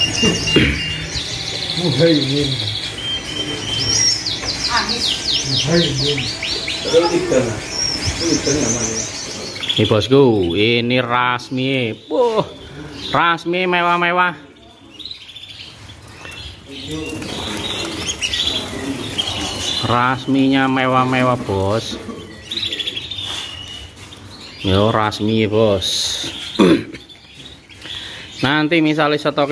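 Many small songbirds chirp and trill close by.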